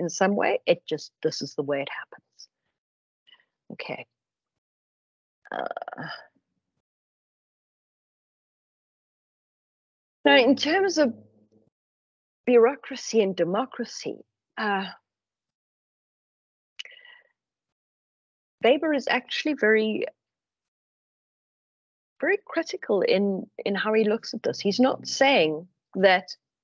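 A woman speaks calmly through an online call, with pauses.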